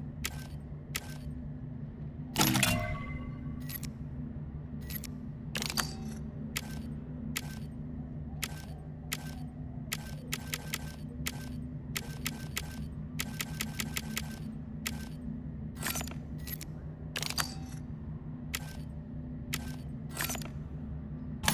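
Short menu clicks tick repeatedly.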